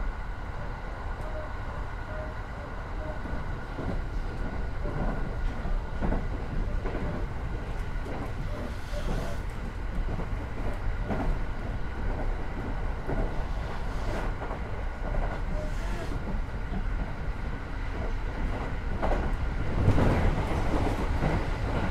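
A train's wheels clatter over rail joints.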